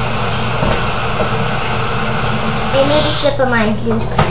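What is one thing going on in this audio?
Water runs from a tap into a pot.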